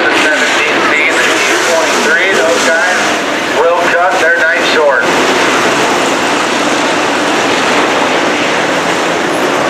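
Race car engines roar loudly as a pack of cars speeds past.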